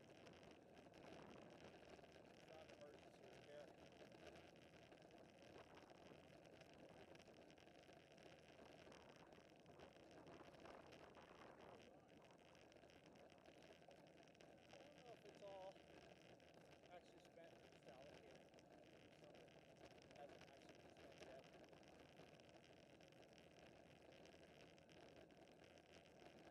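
Wind rushes steadily past a bicycle rider.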